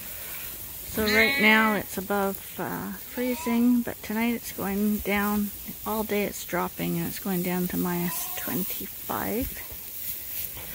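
Lambs bleat repeatedly, close by.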